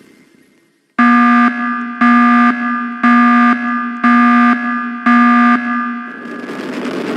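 A game countdown beeps in a steady run of loud tones.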